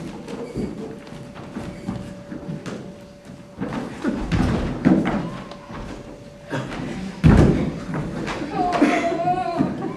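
A rope thumps and scrapes on a wooden floor.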